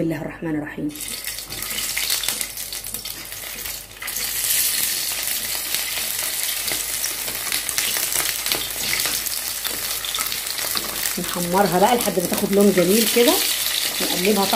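Oil sizzles and crackles as food fries in a pan.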